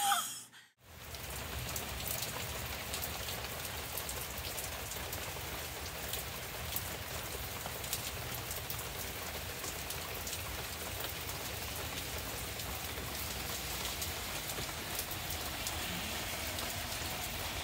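Wind gusts through leafy trees.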